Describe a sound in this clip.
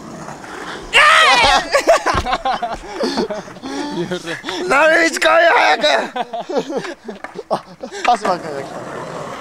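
A young man talks and laughs close by, outdoors.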